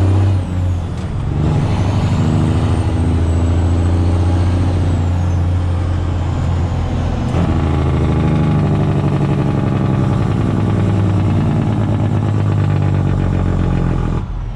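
A truck's diesel engine rumbles loudly from inside the cab.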